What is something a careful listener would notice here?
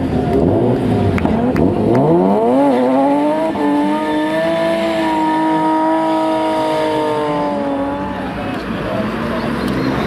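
A drift car's engine revs hard.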